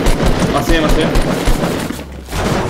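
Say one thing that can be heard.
A gun fires in a video game.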